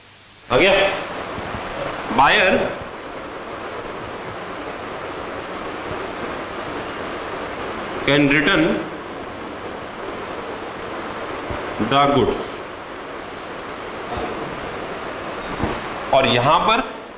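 A man speaks calmly in short phrases nearby, with pauses between them.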